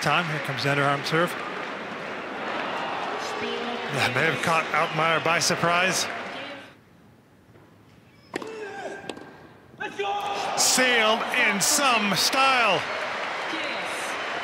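Tennis balls are struck hard with rackets.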